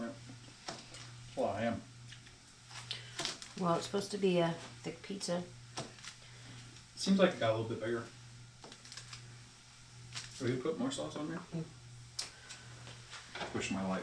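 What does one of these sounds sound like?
A plastic packet crinkles as it is torn open.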